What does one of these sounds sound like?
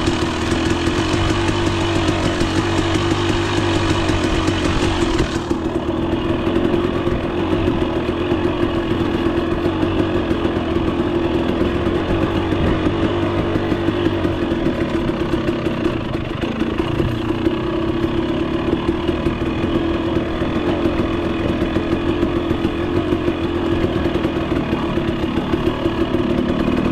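Tyres crunch over a rocky dirt trail.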